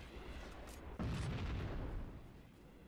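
A weapon clatters as it is swapped for another.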